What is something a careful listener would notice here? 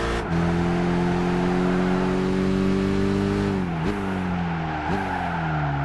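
A racing car engine roars at high revs, dropping in pitch as it shifts gears and slows into a bend.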